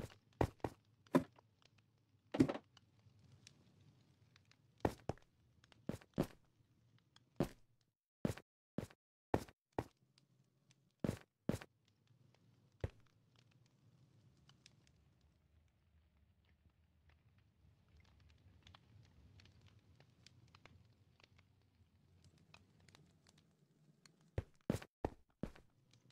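Stone blocks are set down with short, sharp knocks.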